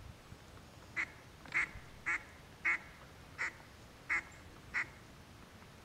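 Geese honk in short calls overhead.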